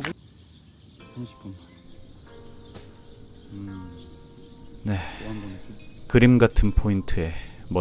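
A man speaks up close.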